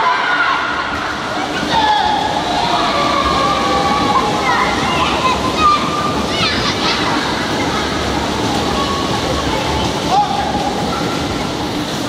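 Water splashes loudly as children kick their feet.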